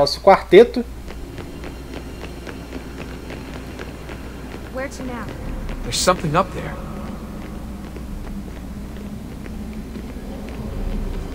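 Footsteps patter quickly on a stone floor in a large echoing hall.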